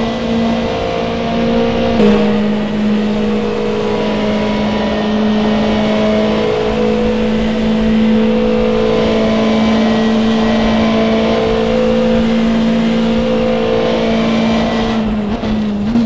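A racing car engine roars at high speed, holding a steady pitch.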